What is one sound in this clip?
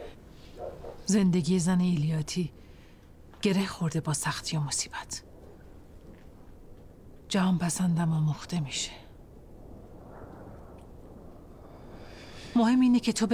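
A woman speaks firmly and calmly, close by.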